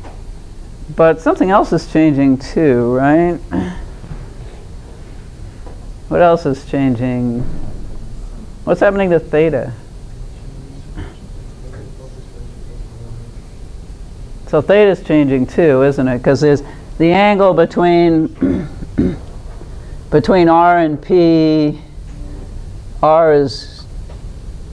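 An older woman speaks calmly through a microphone, in short phrases with pauses.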